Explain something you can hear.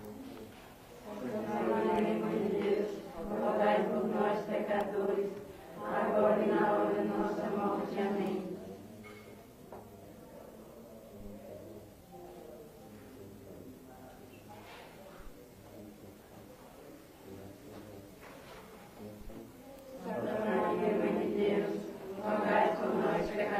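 A group of women sing slowly together nearby.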